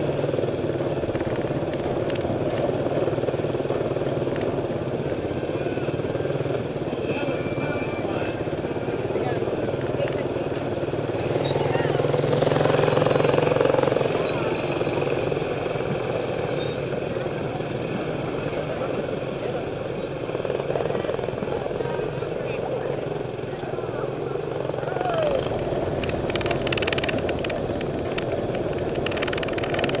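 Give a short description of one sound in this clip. Small motor scooter engines hum steadily close by.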